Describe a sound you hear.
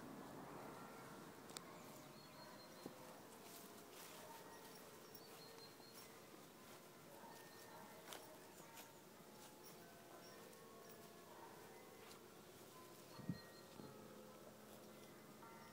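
A horse tears and munches grass close by.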